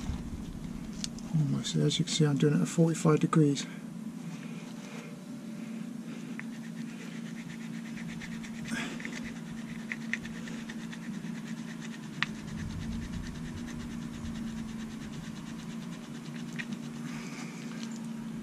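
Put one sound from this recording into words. Gloved fingers squish and pick at wet, muddy material.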